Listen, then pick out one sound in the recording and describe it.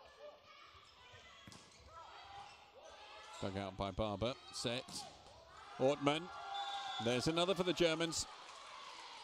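A volleyball is struck hard with the hands during a rally in a large echoing hall.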